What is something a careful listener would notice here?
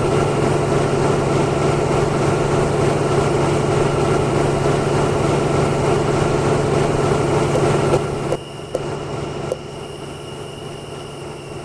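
A bus engine drones steadily, then drops quieter.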